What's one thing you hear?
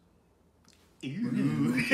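A second man speaks excitedly close to a microphone.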